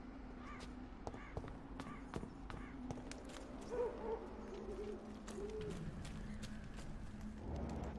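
Footsteps run quickly over a hard path.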